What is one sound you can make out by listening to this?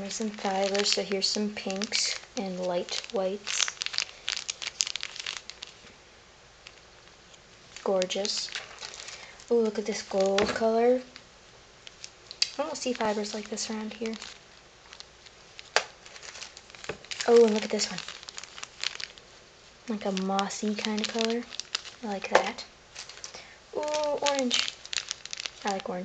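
Plastic bags crinkle and rustle in hands.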